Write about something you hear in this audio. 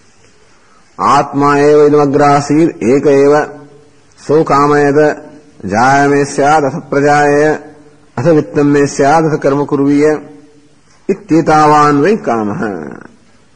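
A man chants in a steady, low voice, close by.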